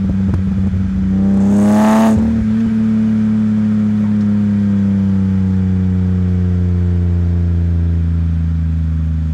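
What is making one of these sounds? A car engine revs up sharply and then eases off.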